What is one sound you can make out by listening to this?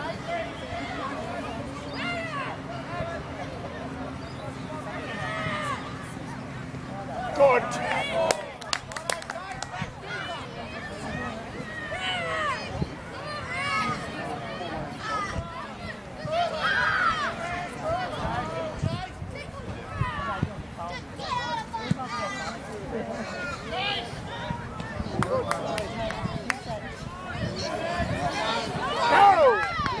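Spectators on the sideline shout and cheer outdoors.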